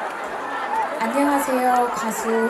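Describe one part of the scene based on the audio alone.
A young woman sings into a microphone over a loudspeaker, in a large echoing hall.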